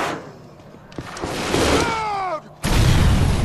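A man shouts out in alarm.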